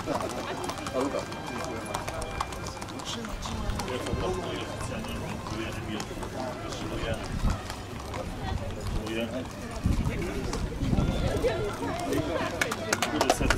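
A man speaks over a loudspeaker outdoors.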